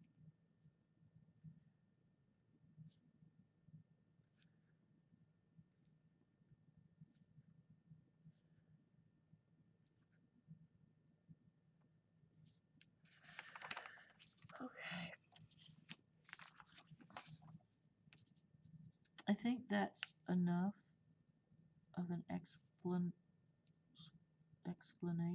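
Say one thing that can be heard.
A crayon scratches softly on paper.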